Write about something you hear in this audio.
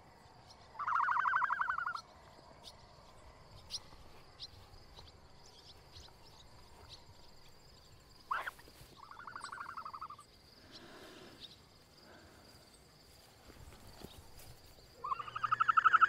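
A large bird's feet rustle softly on grass.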